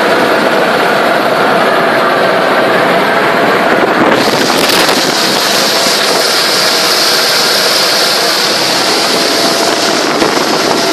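A helicopter's engine and rotor roar loudly and steadily from close by.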